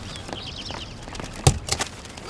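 A wooden door thuds as it is pushed open.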